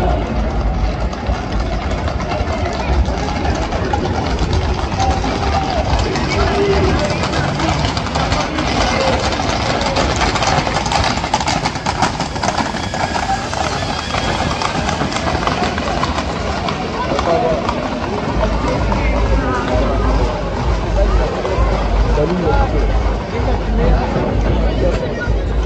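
Hooves clatter on the road as horses trot past.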